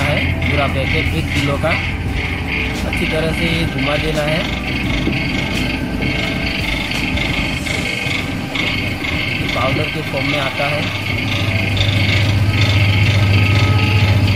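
An electric motor drives a pump with a steady, loud hum that grows louder toward the end.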